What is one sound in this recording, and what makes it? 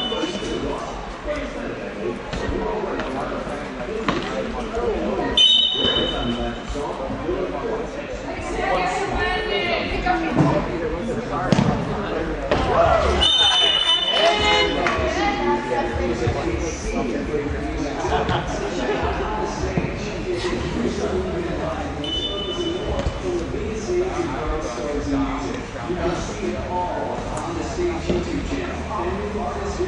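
Young players kick a soccer ball on artificial turf in a large echoing hall.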